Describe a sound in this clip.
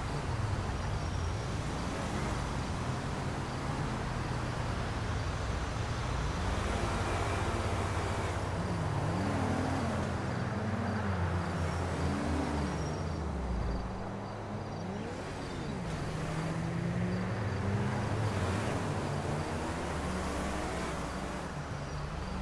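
Cars speed past one after another, their engines rising and falling in pitch as each goes by.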